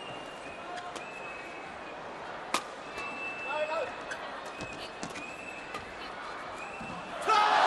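A shuttlecock is struck sharply by rackets.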